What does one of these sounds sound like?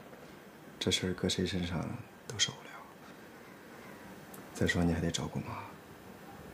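A man speaks calmly and gently, close by.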